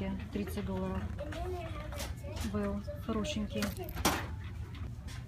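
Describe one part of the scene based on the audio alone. A purse rustles and clicks as it is handled.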